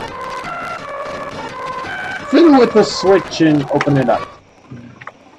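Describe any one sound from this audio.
Chiptune video game music plays.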